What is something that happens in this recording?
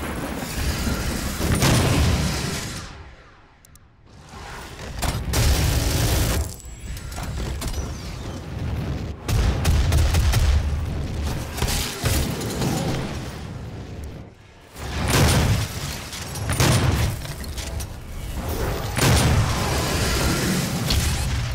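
Monsters growl and roar.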